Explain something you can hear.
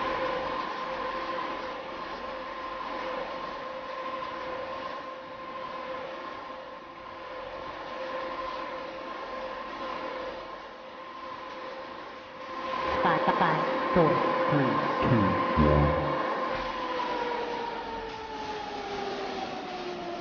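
A spinning fairground ride hums steadily, then its pitch slowly drops.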